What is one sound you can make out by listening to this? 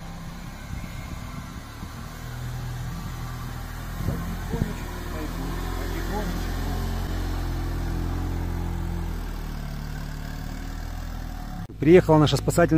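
A quad bike engine idles with a low rumble.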